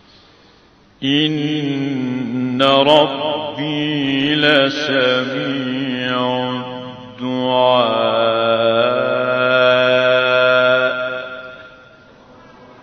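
A man chants a long melodic recitation loudly into microphones.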